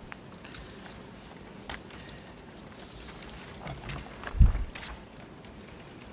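Paper rustles close by.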